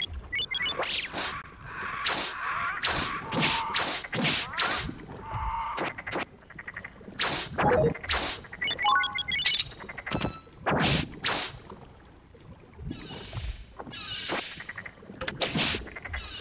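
Sword strikes hit with sharp electronic thuds.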